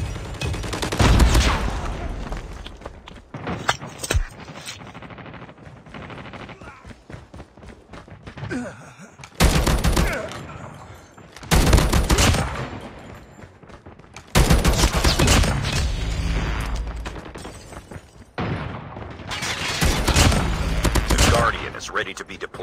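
Gunfire rattles in rapid, loud bursts.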